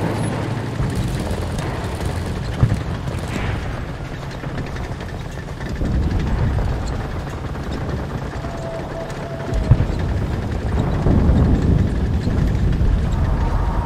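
A heavy engine rumbles low and steady.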